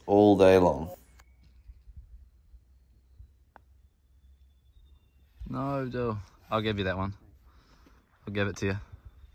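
A young man speaks casually nearby.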